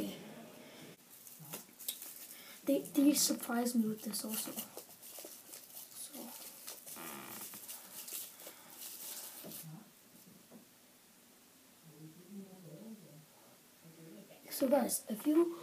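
Plastic wrapping rustles and crinkles in a boy's hands.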